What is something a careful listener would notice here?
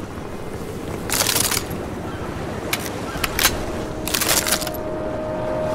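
Metal clicks and clatters sharply as ammunition is picked up and a pistol is reloaded.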